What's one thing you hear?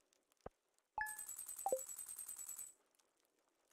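A video game plays rapid, bright ticking chimes as points are tallied.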